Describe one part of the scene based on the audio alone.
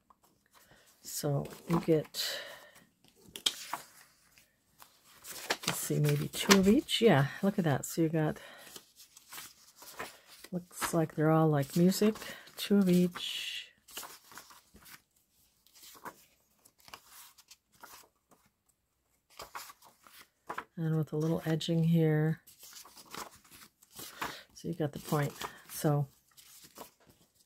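Paper sheets rustle and shuffle as they are handled.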